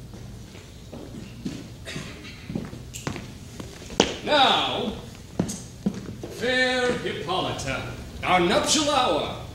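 A man speaks with animation on a stage, heard from a distance in the hall.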